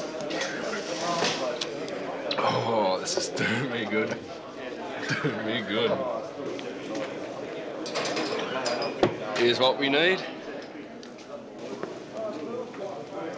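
An older man talks quietly up close.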